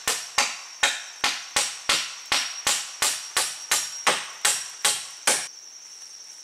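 A hammer strikes a nail into a wooden pole in quick, steady blows.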